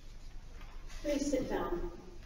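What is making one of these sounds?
A woman speaks calmly into a microphone, her voice echoing.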